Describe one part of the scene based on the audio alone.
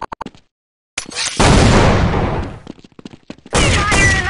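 A grenade bursts with a loud boom.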